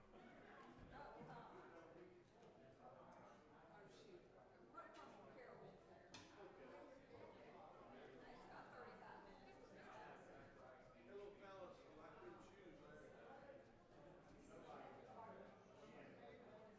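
Many people chat at once in a large echoing hall.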